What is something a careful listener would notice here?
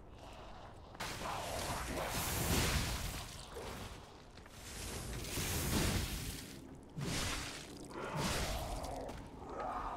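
Weapons clash and whoosh in loud bursts of combat.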